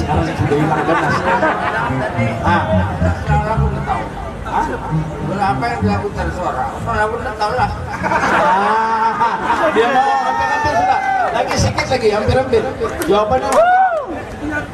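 A man sings through a microphone over loudspeakers.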